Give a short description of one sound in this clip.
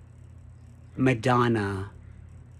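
A man speaks briefly and close up, with expression.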